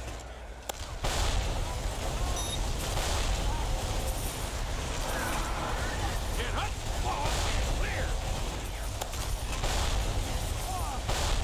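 A rapid-fire gun rattles continuously.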